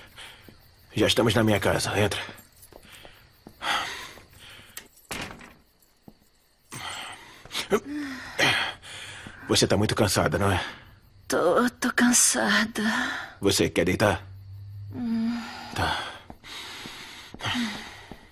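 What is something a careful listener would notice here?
A woman moans and gasps close by.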